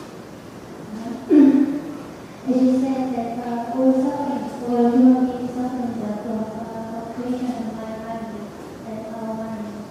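A man chants slowly in a deep, steady voice into a microphone.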